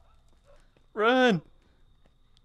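A young man shouts out loudly in a short burst.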